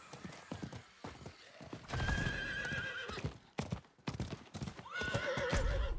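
Horse hooves clop and gallop over dry ground.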